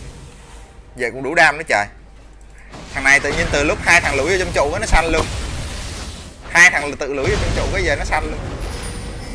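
A young man speaks with animation into a close microphone.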